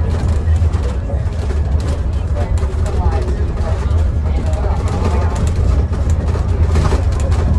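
A bus engine rumbles low and steady as the bus drives along.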